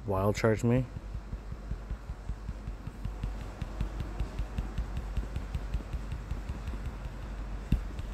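Quick attack blows thud again and again in a fast rhythm.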